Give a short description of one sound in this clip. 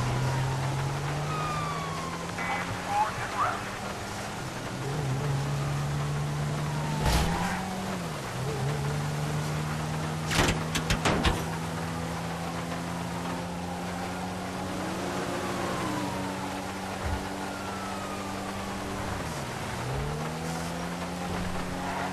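Other cars rush past on a highway.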